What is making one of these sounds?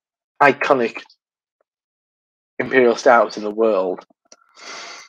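A middle-aged man speaks calmly into a microphone over an online call.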